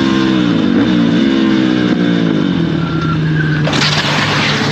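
A motorcycle engine revs and changes pitch as the bike rides.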